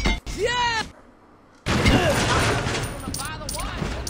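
Wooden crates crash and break apart.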